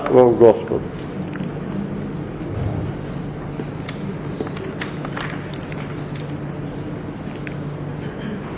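An elderly man speaks calmly in a room with a slight echo.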